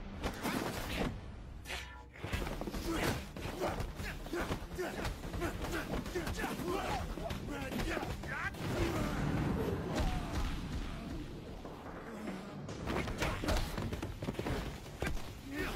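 Punches and kicks land with hard thuds.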